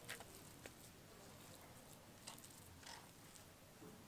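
A stone roller grinds and scrapes on a grinding stone.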